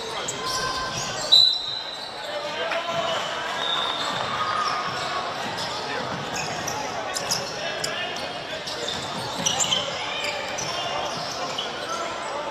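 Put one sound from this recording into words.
Players shout and call to each other across an outdoor field at a distance.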